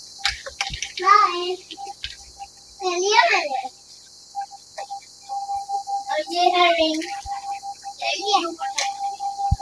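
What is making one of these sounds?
A young child squeals and chatters excitedly close by.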